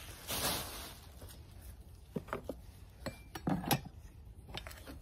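A plastic sheet rustles and crinkles close by.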